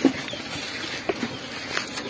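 An elephant's trunk brushes and scuffs against dirt.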